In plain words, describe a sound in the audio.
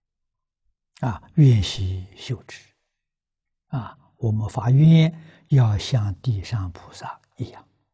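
An elderly man speaks calmly close to a microphone, with pauses.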